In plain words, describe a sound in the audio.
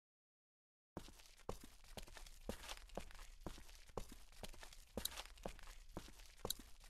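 Footsteps walk on pavement.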